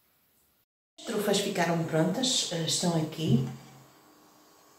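A middle-aged woman speaks calmly, close to the microphone.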